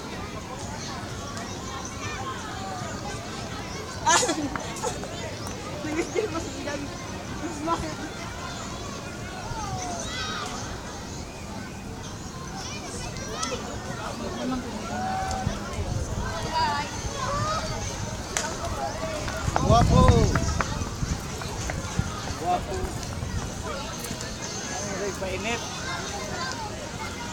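A crowd of people chatter outdoors in the distance.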